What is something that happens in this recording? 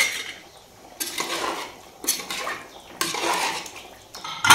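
A metal ladle scrapes and stirs inside a pot.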